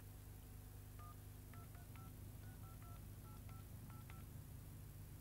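Touch-tone phone keys beep in quick succession.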